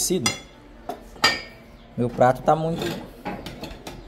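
A spoon scrapes against a metal pot.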